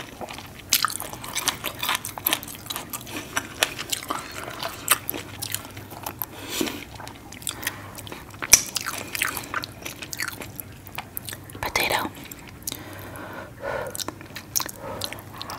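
Fingers squish and rummage through thick, wet sauce close to a microphone.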